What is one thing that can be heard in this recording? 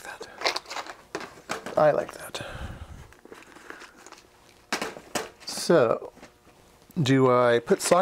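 A plastic parts box rattles in hand.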